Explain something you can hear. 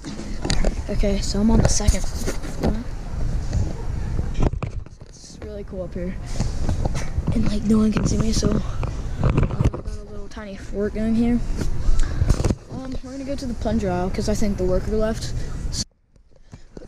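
A boy talks with animation close to the microphone.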